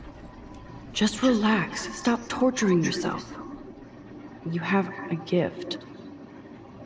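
A young woman speaks gently and calmly.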